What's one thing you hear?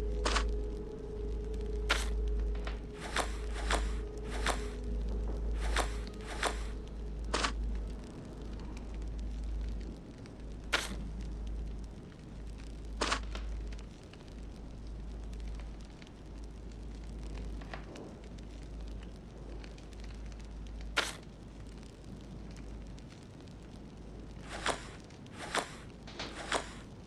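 Puzzle pieces click sharply into place.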